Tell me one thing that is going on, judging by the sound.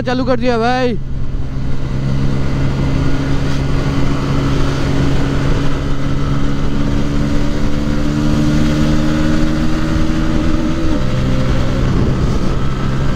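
Wind rushes past a rider.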